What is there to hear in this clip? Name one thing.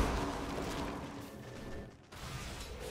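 A magical blast bursts with a rushing whoosh.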